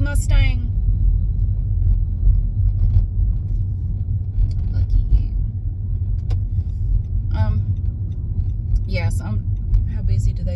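A car's engine and tyres rumble low and steady from inside the car.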